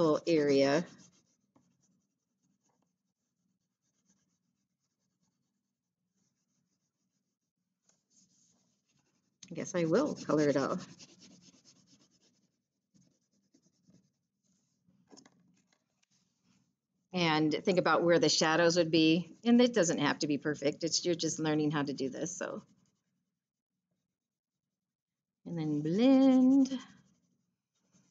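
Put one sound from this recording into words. A woman speaks calmly through a microphone, in short bursts with pauses.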